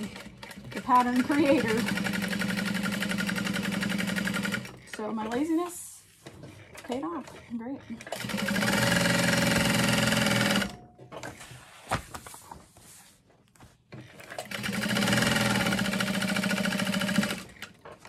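A sewing machine stitches in fast, steady bursts.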